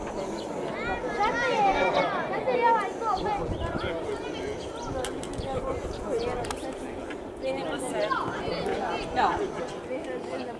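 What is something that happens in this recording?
Children shout across an open field.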